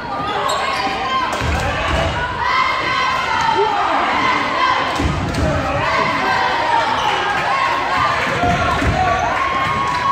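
Spectators and players call out and chatter in a large echoing hall.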